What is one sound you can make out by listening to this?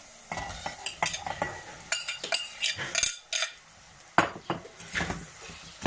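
A glass lid clinks against a pot.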